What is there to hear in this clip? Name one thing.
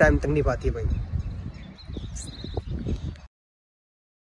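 A young man speaks close to a phone's microphone.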